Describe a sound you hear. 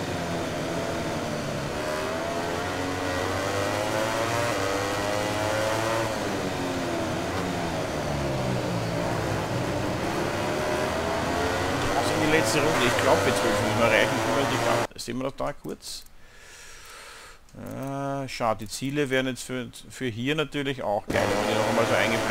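A motorcycle engine revs high and shifts gears as it races.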